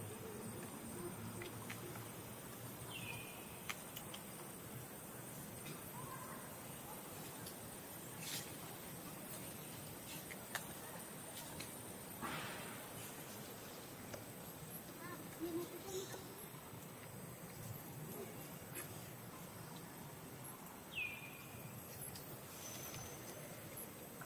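A baby monkey suckles softly at close range.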